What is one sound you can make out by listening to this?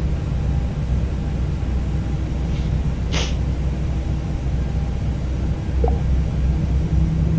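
Jet engines hum low and steady.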